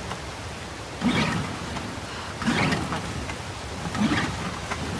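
A small outboard motor sputters briefly each time its starter cord is yanked.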